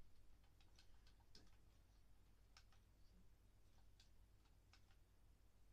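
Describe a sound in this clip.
Short soft clicks of a game menu sound from a television speaker.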